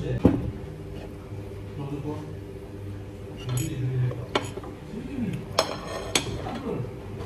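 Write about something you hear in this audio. A fork and knife scrape and clink against a metal plate.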